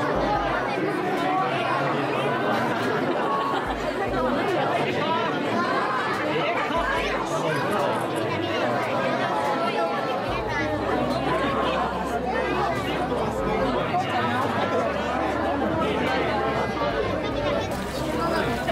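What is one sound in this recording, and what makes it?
A crowd of people murmur and chatter in a large echoing hall.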